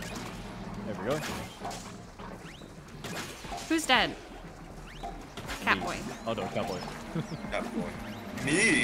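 Cartoon creatures squeal and chirp.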